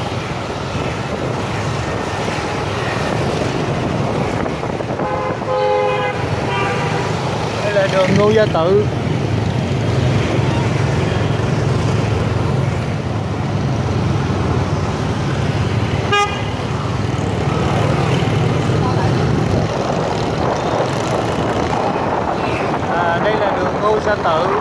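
Motorbike engines hum and buzz steadily in passing street traffic.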